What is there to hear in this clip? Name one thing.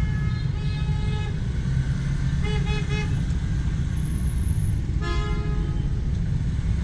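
Motorbike horns honk in short bursts.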